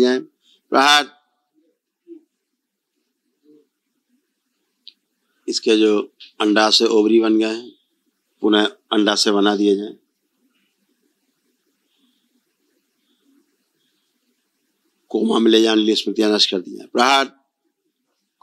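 A middle-aged man speaks calmly into a microphone, in short bursts.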